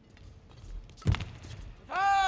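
A racket strikes a shuttlecock with a sharp crack.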